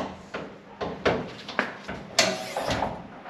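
A car bonnet latch clicks open.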